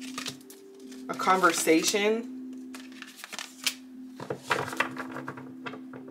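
Playing cards rustle and slap softly as they are shuffled.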